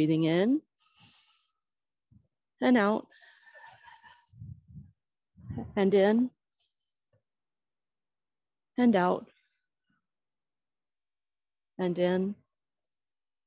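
A middle-aged woman calls out loudly in short bursts.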